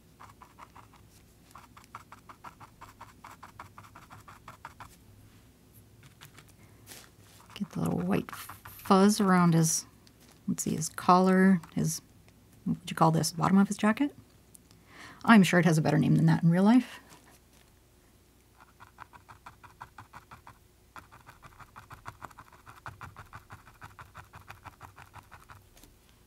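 A paintbrush dabs and scratches softly on a canvas.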